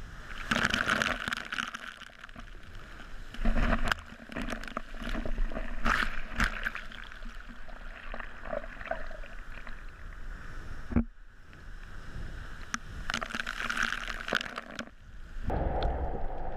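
Water splashes against a swimmer's head.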